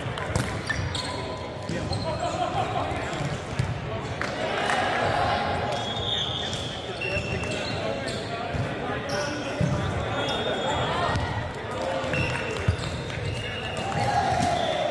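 Young men call out and chat, echoing in a large hall.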